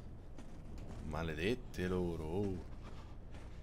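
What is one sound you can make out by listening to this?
A young man speaks briefly into a microphone with animation.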